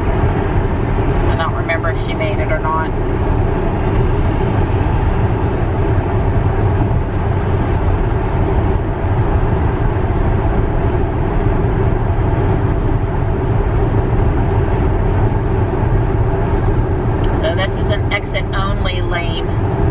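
Road noise rumbles steadily inside a car driving fast on a highway.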